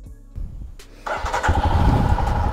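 A motorcycle engine starts.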